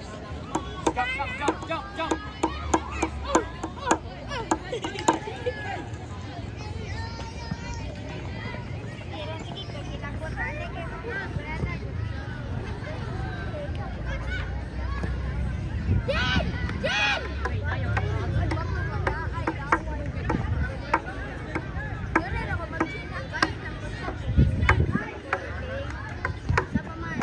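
Young players and spectators shout and call out across an open field outdoors.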